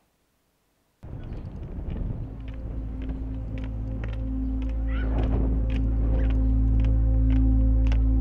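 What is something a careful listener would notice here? Footsteps walk on a paved path outdoors.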